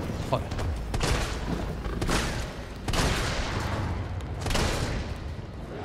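Gunshots boom in quick succession.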